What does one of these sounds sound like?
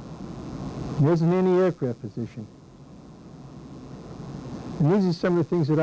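An elderly man speaks calmly and slowly through a microphone.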